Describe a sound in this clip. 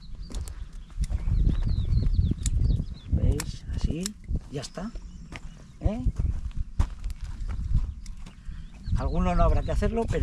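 A middle-aged man speaks calmly outdoors, close to the microphone.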